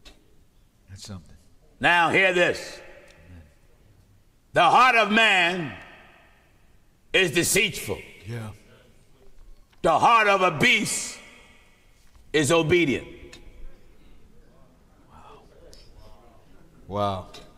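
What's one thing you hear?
A middle-aged man speaks with animation into a microphone, in bursts with long pauses.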